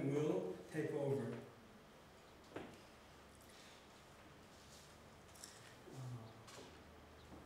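A man speaks calmly through a microphone in a large room, with pauses.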